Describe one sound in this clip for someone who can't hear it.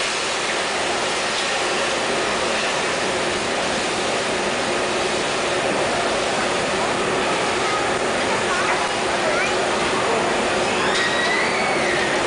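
Steam hisses loudly as molten metal meets the moulds.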